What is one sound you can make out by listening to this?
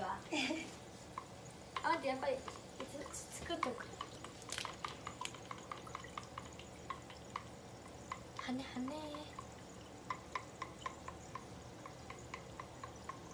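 Dumplings sizzle and crackle in a frying pan.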